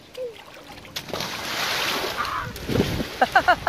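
A man jumps into a pool with a loud splash.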